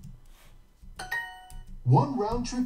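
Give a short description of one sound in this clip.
A short bright chime rings.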